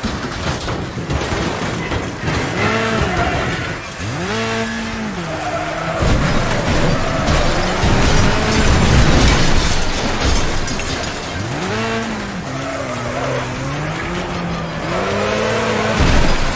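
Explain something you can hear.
A small engine revs up and down repeatedly.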